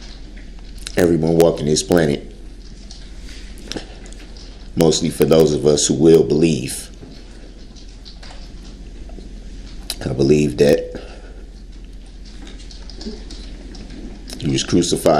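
A man speaks emotionally in halting bursts through a microphone.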